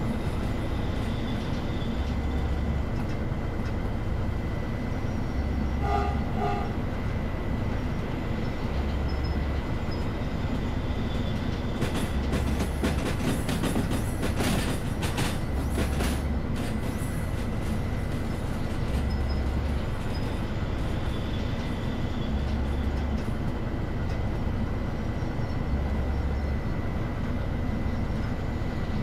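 A diesel locomotive engine idles with a steady low rumble and a slow, regular throb.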